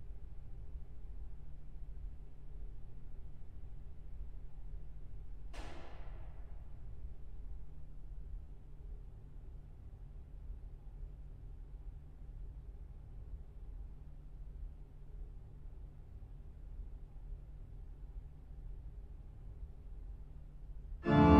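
A pipe organ holds a soft, low chord that grows quieter after a few seconds.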